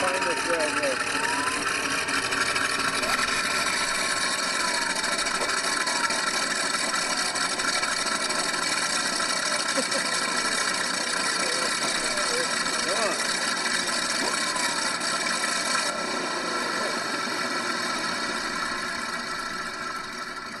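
A model airplane engine idles with a steady buzzing drone close by.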